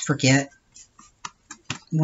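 A brush dabs glue onto paper.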